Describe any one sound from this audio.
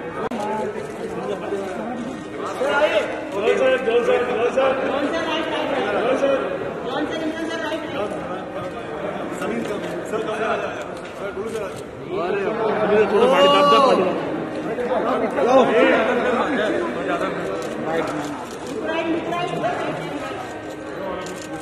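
Several men talk and call out.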